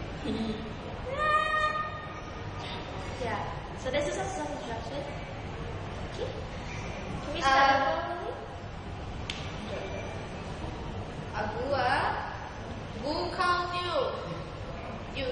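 Young women sing in high voices close by.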